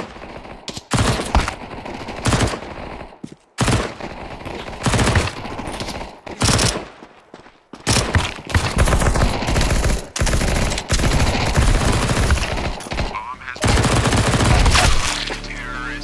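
A submachine gun fires loud rapid bursts.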